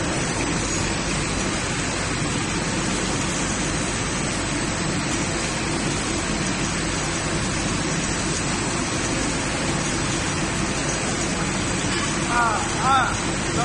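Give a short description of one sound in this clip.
A biscuit making machine hums and rattles as its conveyor belts run.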